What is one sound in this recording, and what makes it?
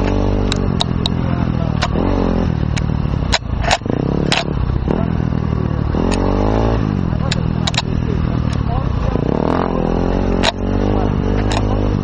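Branches and brush slap and scrape against the rider.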